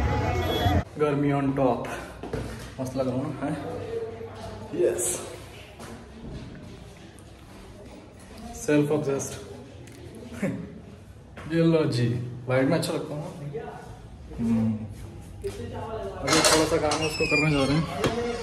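A young man talks cheerfully and close by.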